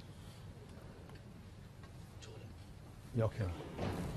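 A cue strikes a snooker ball with a soft click.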